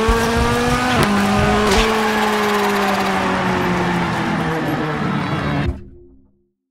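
Gravel sprays and rattles under a car's tyres.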